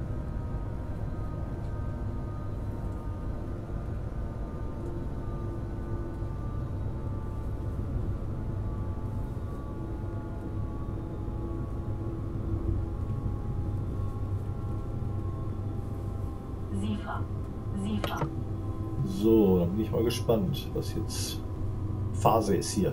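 A train's electric motors hum and whine steadily as it runs along the track.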